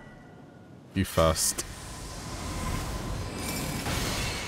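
A magic blade swishes through the air with a shimmering whoosh.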